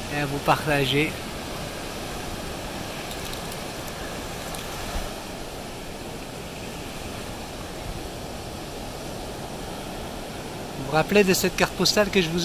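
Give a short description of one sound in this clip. Waves crash and wash steadily onto a shore outdoors.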